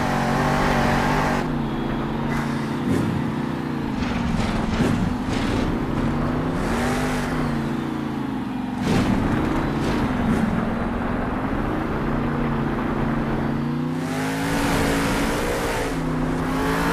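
A monster truck engine roars and revs up and down.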